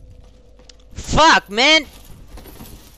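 A young man cries out loudly in a sudden burst.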